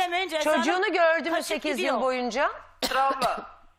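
A woman speaks loudly and with animation into a microphone.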